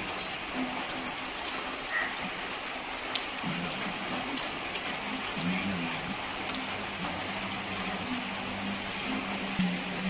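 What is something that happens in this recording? Raindrops patter on a plastic sheet.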